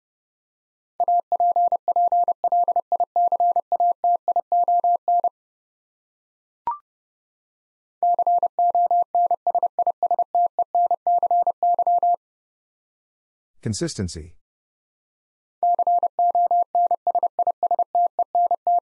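Morse code beeps out in quick, steady bursts of a single high tone.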